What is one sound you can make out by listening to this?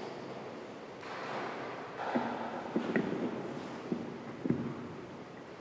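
Footsteps echo through a large hall as a person walks.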